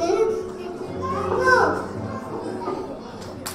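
A young boy speaks briefly into a microphone.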